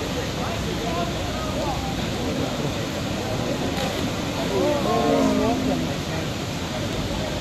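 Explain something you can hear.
Water rushes steadily outdoors.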